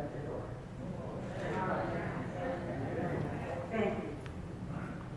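A woman speaks at a podium in an echoing room.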